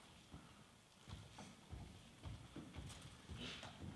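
Shoes step softly across a wooden stage.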